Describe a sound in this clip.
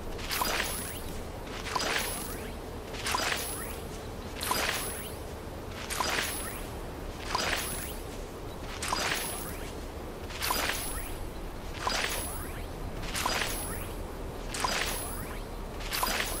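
A soft rustling chime sounds each time a seed is planted in soil.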